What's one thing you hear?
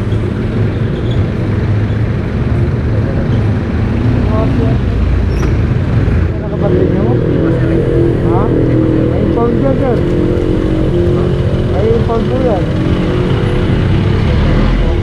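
A motorcycle engine idles close by with a low, steady rumble.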